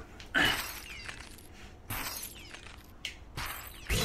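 A figure shatters into pieces with a crisp breaking sound.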